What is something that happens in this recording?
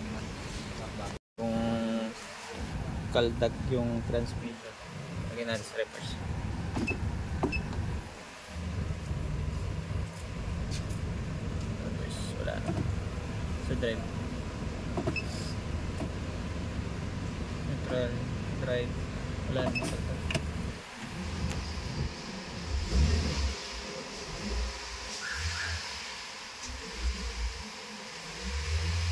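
A car engine idles.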